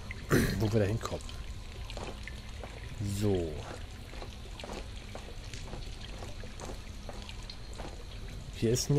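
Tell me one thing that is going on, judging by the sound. Footsteps clank on a metal grating at a steady walking pace.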